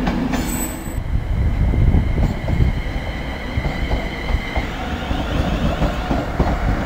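An electric commuter train rolls slowly in with a low rumble and a whine.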